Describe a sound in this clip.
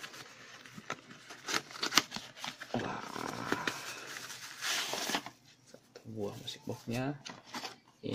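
A cardboard box is torn open and rustles.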